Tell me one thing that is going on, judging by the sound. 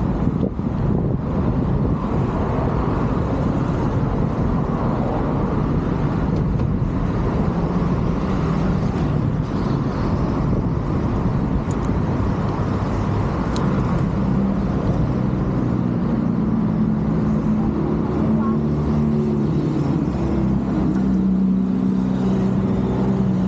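Wind buffets a microphone loudly outdoors.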